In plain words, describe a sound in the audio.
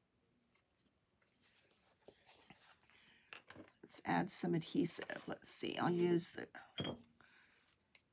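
Paper rustles and taps against a table.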